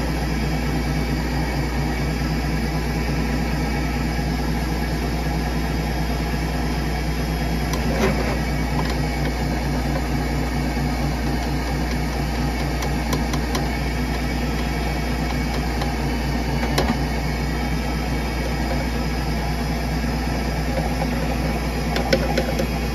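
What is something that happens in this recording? A spinning drain cable rattles and knocks against metal.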